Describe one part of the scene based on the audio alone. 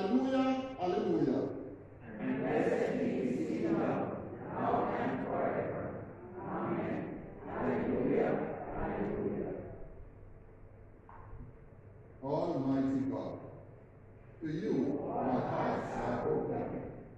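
A man reads aloud calmly through a microphone, echoing in a large hall.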